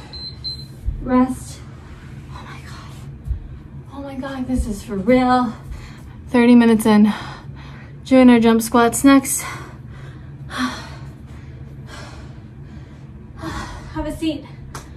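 A woman talks breathlessly close by, with animation.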